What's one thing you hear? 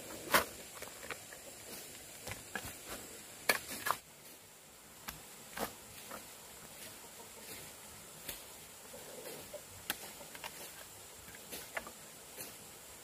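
A hoe strikes and scrapes stony soil in sharp, uneven knocks.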